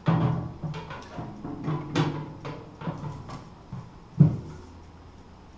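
A metal panel clanks and rattles as hands handle it.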